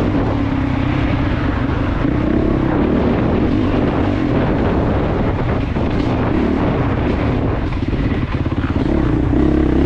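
Tyres thump and crunch over a bumpy dirt trail.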